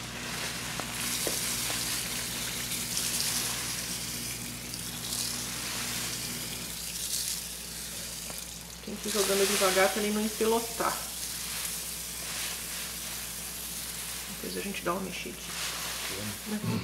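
Dry grain pours and rustles into a plastic bucket.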